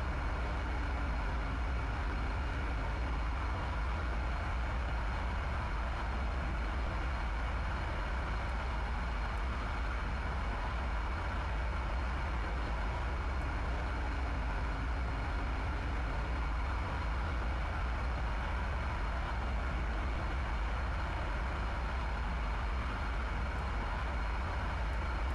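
A jet engine drones steadily with a deep, constant rumble.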